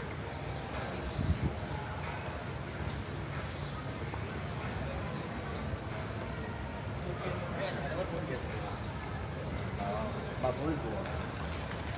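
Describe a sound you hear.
A suitcase rolls over a hard floor.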